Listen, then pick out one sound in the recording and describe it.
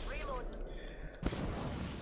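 A shield cell charges with a rising hum.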